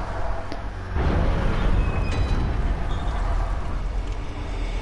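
Heavy wooden gates creak and grind open.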